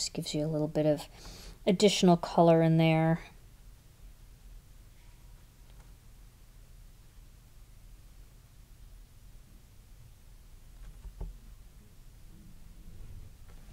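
A felt-tip marker scratches softly on paper.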